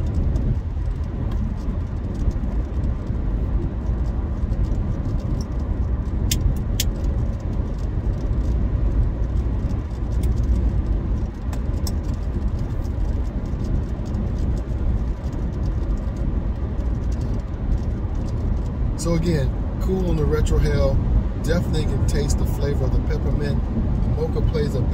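A car engine and road noise rumble steadily from inside the car.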